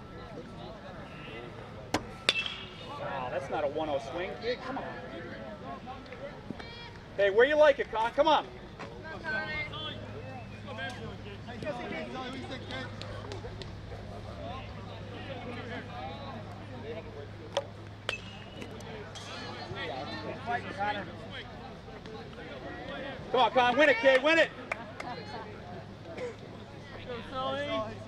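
A crowd of spectators chatters outdoors at a distance.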